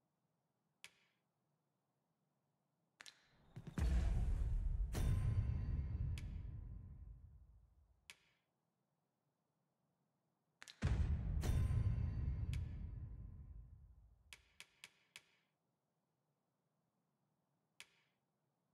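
Short soft menu clicks sound now and then.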